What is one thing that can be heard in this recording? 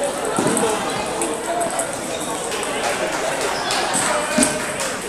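Many people talk in a low murmur in a large echoing hall.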